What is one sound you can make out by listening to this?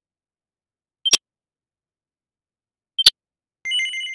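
Short game menu blips sound as message boxes advance.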